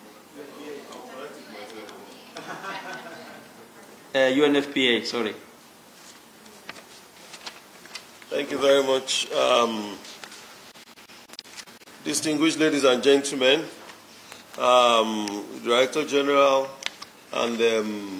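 A man speaks steadily through a microphone in a large echoing hall.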